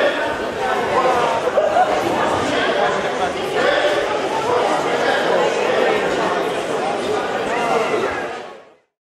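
A crowd of children and adults chatters throughout a large echoing hall.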